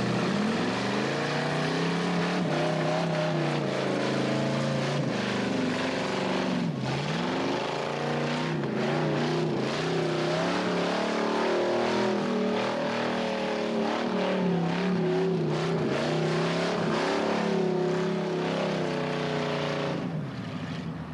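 A car engine revs hard and loud, rising and falling.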